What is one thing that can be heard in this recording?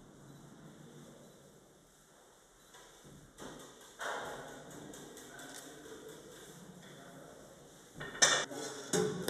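A rolling pin rolls and rustles softly over thin dough on a floured surface.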